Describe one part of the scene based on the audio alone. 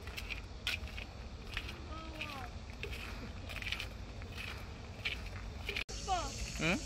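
Footsteps scuff along a paved path outdoors.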